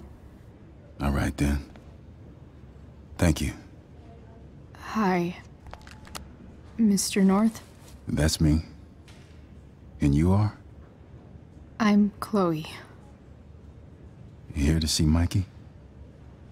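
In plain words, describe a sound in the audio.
A man speaks calmly on a phone nearby.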